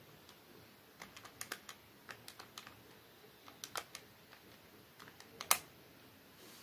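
Calculator keys click as they are pressed.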